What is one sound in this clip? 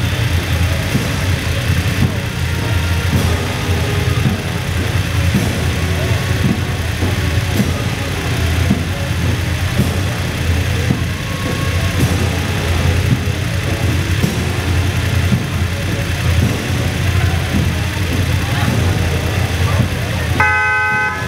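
Motorcycle engines rumble steadily as a line of bikes rolls slowly past.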